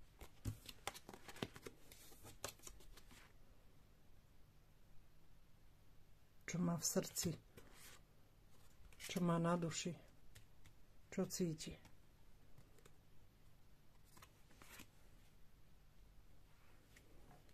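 Playing cards slide and tap against each other as they are handled.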